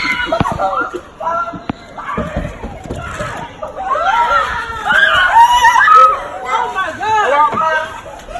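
A young child shouts loudly and excitedly close by.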